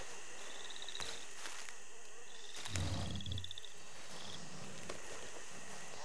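Leaves rustle as a plant is plucked.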